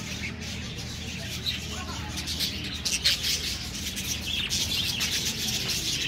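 A budgerigar's wings flutter as it takes off.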